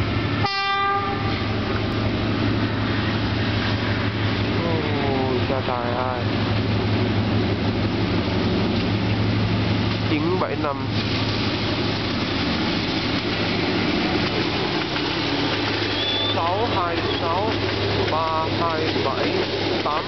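A diesel locomotive engine rumbles as it approaches and passes close by.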